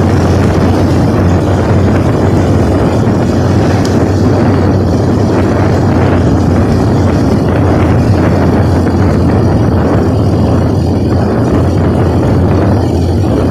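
Wind roars steadily past a rider's helmet.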